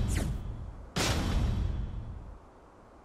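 A menu sound whooshes as an option is chosen.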